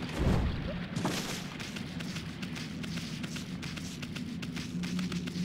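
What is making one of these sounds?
Quick light footsteps patter over the ground.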